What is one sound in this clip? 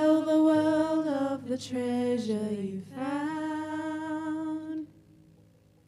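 A woman sings into a microphone, holding long notes.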